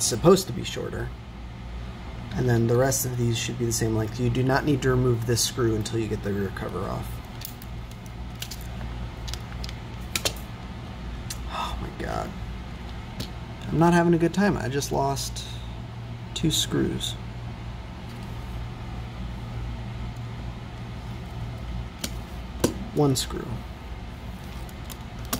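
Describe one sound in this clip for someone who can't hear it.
Plastic parts click and clack as a handheld console is taken apart.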